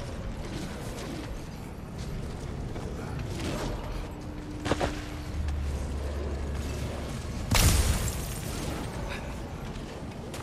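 Heavy footsteps crunch on snow and stone.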